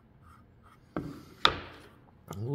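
A small wooden box knocks onto a wooden bench.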